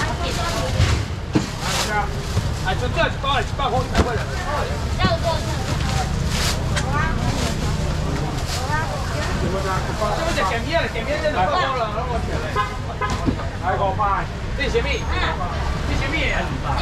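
A young man calls out loudly to customers.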